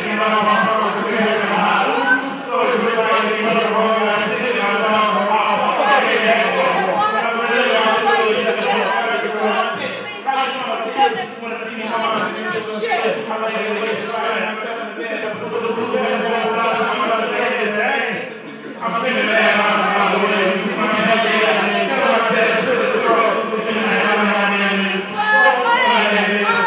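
A young woman sings loudly and with feeling close by.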